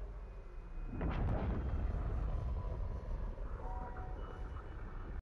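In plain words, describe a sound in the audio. A huge explosion booms and rumbles.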